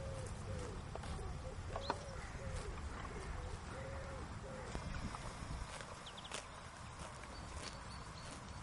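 A horse tears and chews grass up close.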